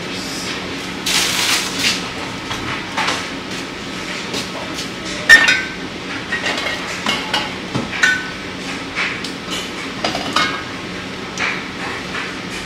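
Packets rustle and items clatter nearby.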